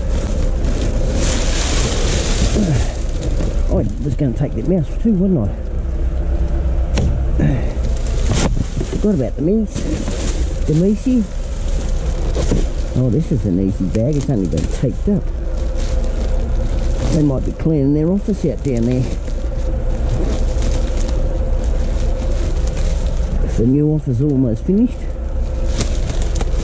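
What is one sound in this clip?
Plastic trash bags rustle and crinkle close by.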